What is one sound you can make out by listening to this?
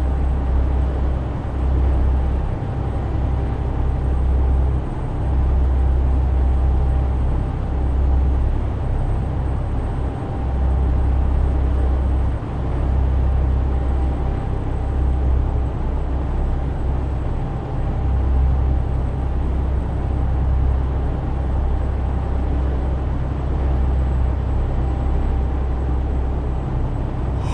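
Tyres roll on a highway with a steady road noise.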